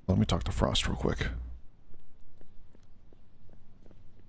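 A soldier crawls across a hard floor with soft scuffing.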